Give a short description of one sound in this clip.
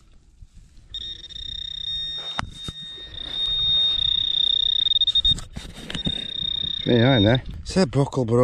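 A metal detector probe gives a steady high beep.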